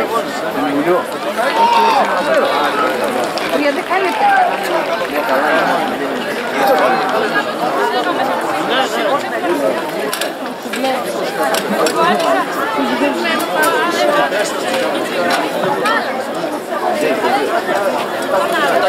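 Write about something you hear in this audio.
A crowd of young people chatters and calls out nearby outdoors.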